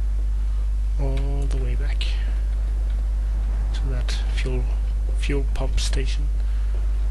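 A young man speaks briefly and quietly into a headset microphone.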